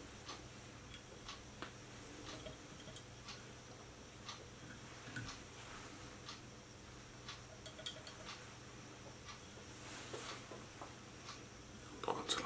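Thread rubs and ticks softly as it is wound tightly by hand.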